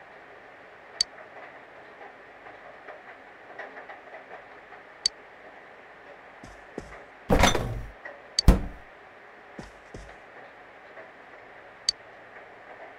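Short, sharp electronic blips sound now and then.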